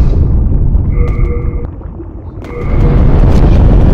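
A game menu chimes softly.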